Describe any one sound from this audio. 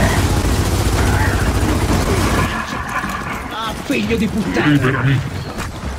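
Rapid gunfire rattles from a video game.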